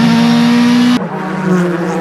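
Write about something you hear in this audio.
A race car engine roars loudly at high speed from inside the car.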